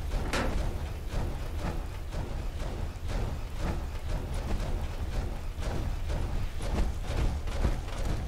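Heavy metal footsteps clank and thud at a steady walking pace.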